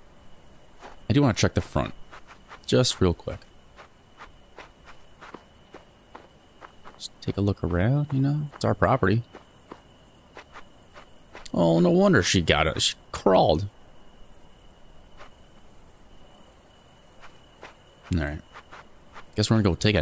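A man speaks in short bursts into a close microphone.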